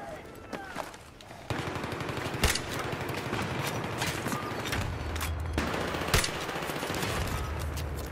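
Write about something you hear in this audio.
Explosions boom and echo loudly.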